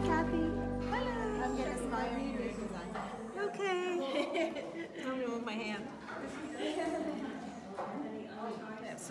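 An older woman talks calmly close by.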